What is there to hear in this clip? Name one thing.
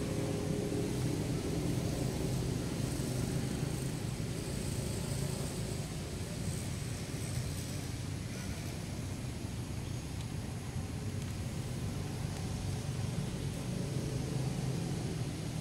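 A monkey chews food with soft smacking sounds.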